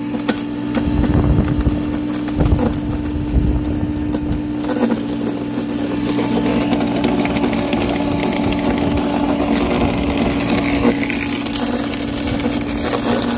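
A garden shredder motor hums steadily.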